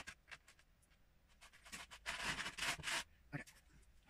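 Small plastic pieces rattle and clatter as a man rummages through a plastic bin.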